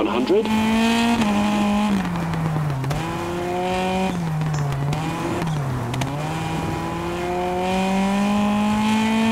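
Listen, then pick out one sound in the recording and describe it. A rally car engine roars, rising and falling in pitch as the gears shift.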